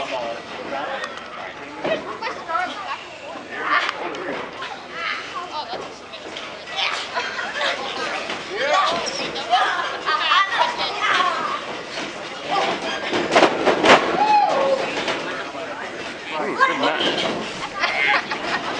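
A crowd cheers and shouts throughout, echoing in a large hall.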